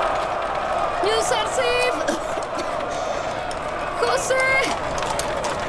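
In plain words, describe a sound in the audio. Women let out high, trilling cries of joy.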